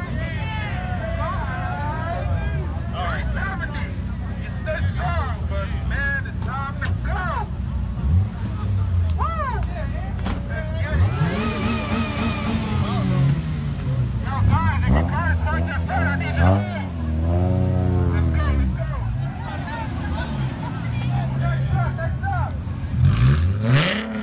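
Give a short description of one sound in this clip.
A crowd of young men and women chatters and shouts excitedly nearby.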